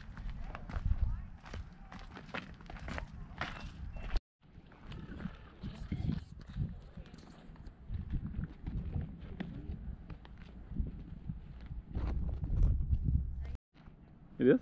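Footsteps crunch on a dirt trail.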